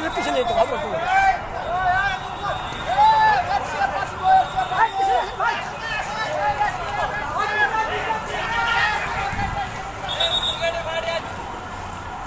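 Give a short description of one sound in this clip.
A crowd of men shouts and yells outdoors.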